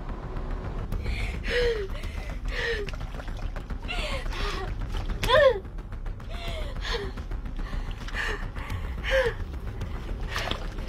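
A young woman gasps and whimpers.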